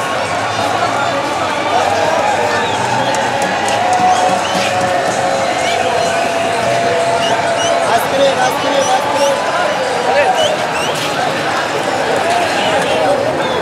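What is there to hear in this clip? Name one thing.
Sharp whistles ring out from the crowd.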